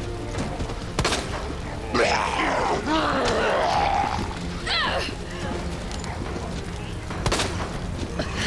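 A gunshot rings out sharply.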